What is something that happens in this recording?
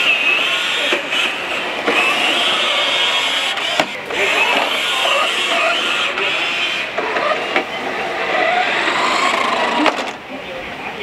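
A toy car's electric motor whines steadily as it drives.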